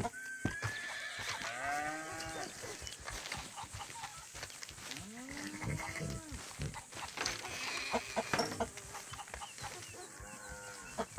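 Chickens cluck nearby.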